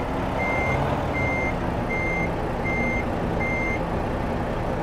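A reversing alarm beeps in a steady, even rhythm.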